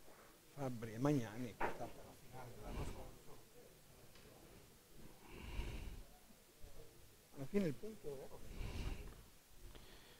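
Men talk quietly nearby.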